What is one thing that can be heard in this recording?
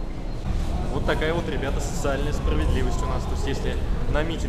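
A young man talks close to a microphone, calmly.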